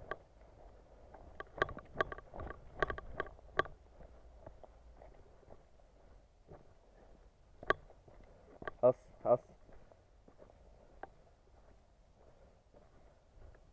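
Footsteps crunch on frozen gravel and snow.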